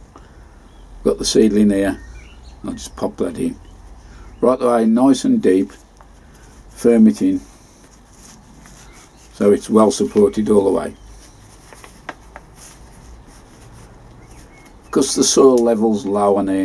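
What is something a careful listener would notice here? A middle-aged man talks calmly close to the microphone, in short bursts.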